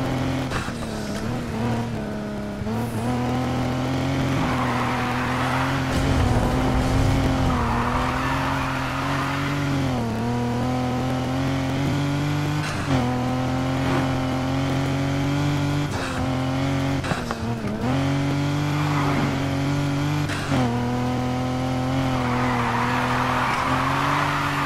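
A car engine roars and revs, shifting gears as it speeds up.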